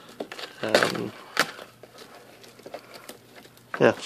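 Plastic wrapping crinkles as hands tear it off a box.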